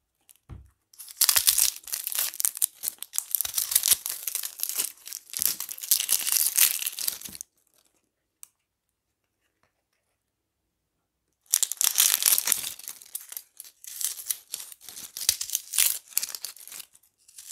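Dry onion skins crackle and rustle as hands peel them.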